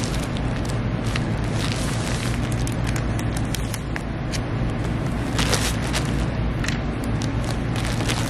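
A plastic mailer bag crinkles and rustles as hands smooth it flat.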